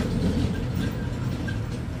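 A motorbike drives by.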